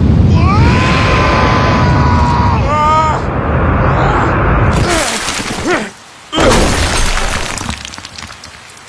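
A huge metal structure crashes down with a loud rumbling roar.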